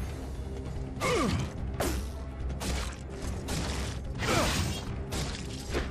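A monster groans and shrieks in pain.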